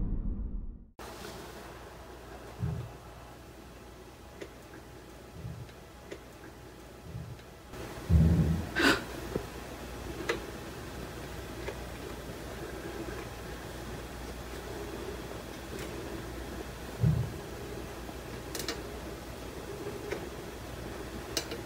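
A fluorescent light hums steadily.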